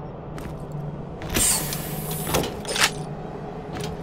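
A metal chest clanks open.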